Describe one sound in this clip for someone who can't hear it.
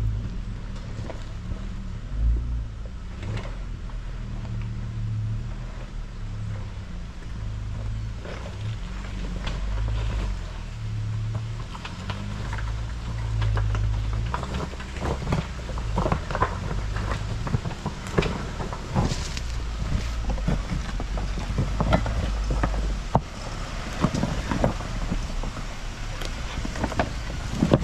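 An off-road vehicle's engine rumbles low and revs unevenly as it climbs.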